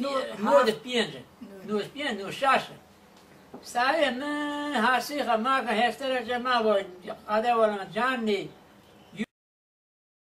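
An elderly man talks calmly and close by.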